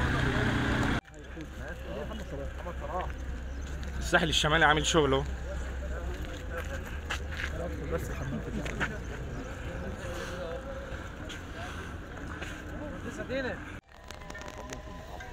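Men talk among themselves outdoors.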